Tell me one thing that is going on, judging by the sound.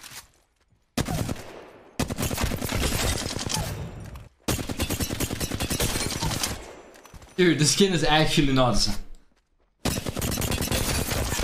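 Rapid gunfire bursts from an automatic rifle.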